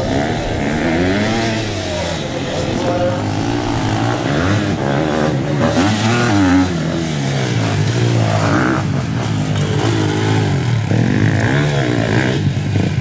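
Dirt bike engines rev and whine loudly, rising and falling in pitch.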